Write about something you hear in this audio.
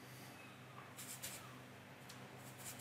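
A paintbrush dabs and scrapes in a watercolour palette.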